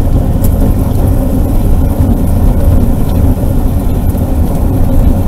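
Wind rumbles loudly against a moving vehicle outdoors.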